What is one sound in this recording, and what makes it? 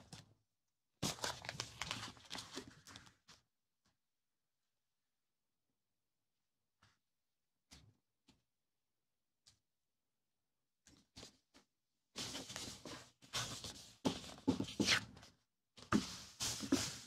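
Fingers rub a paper sticker pressed onto a notebook page.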